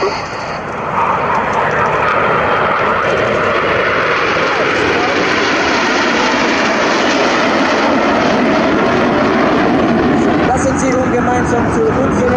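Jet planes roar steadily overhead.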